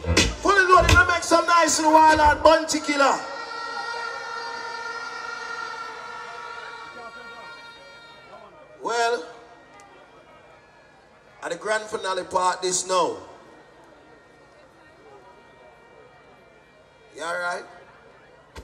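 A man shouts energetically into a microphone over loudspeakers.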